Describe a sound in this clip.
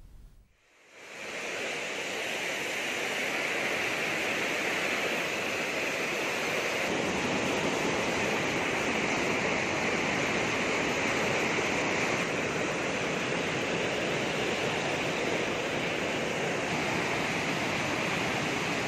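Water roars steadily as it pours through open dam gates.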